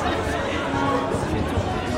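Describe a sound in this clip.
A violin plays.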